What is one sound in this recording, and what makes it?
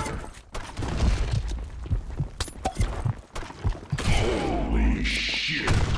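A rifle clicks and clatters as it is handled.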